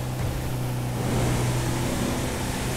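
A van engine echoes inside a tunnel.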